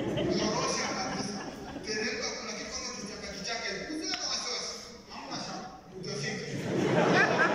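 A man preaches with animation through a microphone in an echoing hall.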